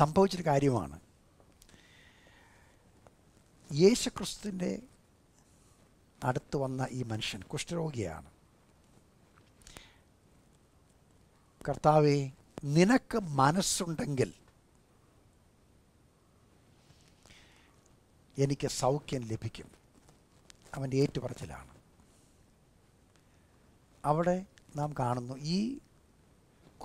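An elderly man speaks calmly and expressively to a close microphone, in bursts with long pauses.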